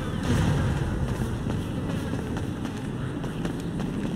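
Footsteps climb concrete stairs.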